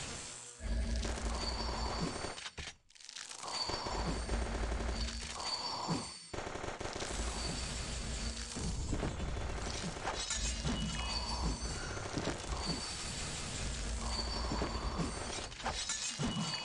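Game music plays with a steady beat.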